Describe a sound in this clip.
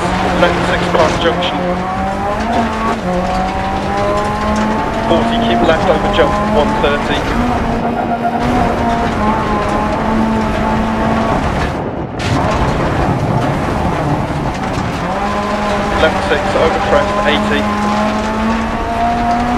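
A rally car engine roars loudly and revs up and down through gear changes.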